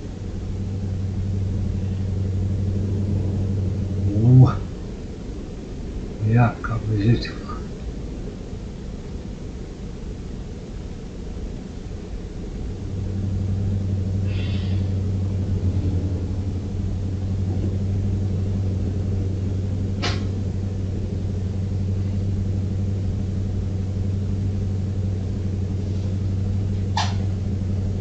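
A truck engine drones steadily, fading down for a while before droning loud again.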